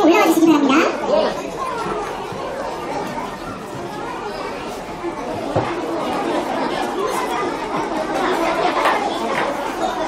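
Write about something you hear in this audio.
Adult men and women chatter in a large echoing hall.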